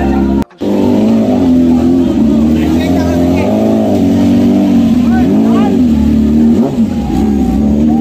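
A crowd of young men chatters in the background.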